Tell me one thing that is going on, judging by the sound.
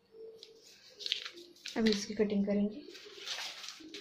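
Newspaper rustles and crinkles as it is handled.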